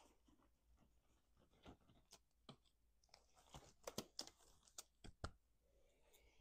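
Latex gloves crinkle and snap as they are pulled on.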